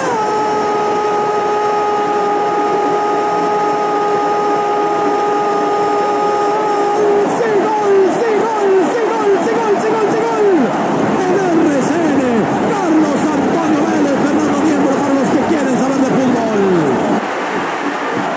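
A crowd cheers loudly in a large stadium.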